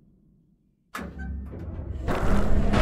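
A vehicle engine rumbles low.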